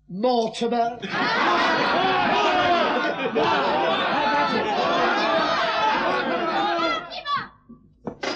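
A crowd of men cheers and shouts together.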